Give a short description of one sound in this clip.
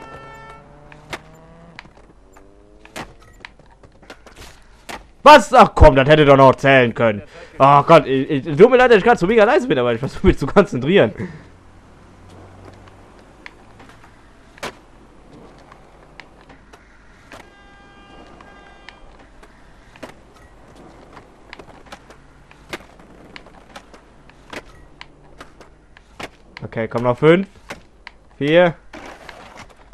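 Skateboard wheels roll over pavement with occasional clacks.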